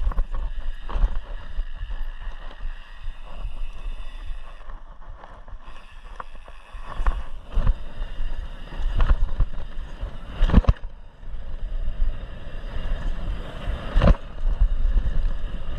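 Bicycle tyres crunch and rumble over a dirt trail.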